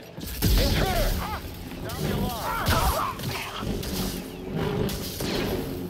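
A lightsaber hums and clashes.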